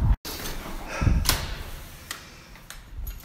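A door handle clicks as it turns.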